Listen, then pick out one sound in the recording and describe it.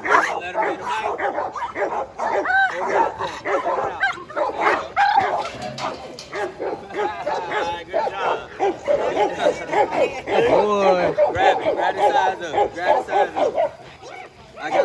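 A man shouts encouragement with animation close by.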